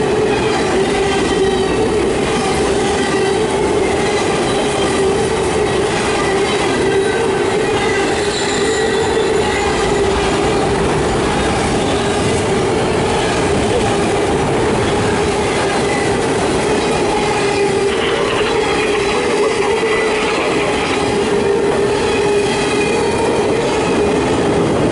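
A long freight train rumbles past close by, its wheels clattering on the rails.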